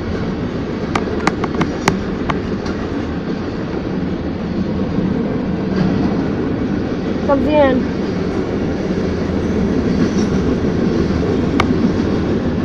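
Freight car wheels clack over rail joints.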